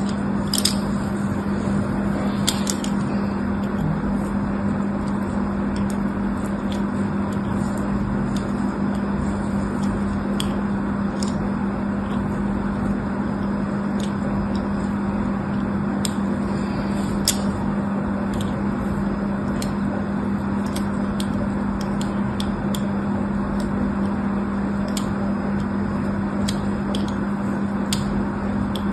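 A small blade scrapes and cuts into soap with soft crisp clicks.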